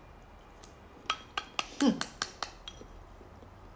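Chopsticks click against a ceramic bowl.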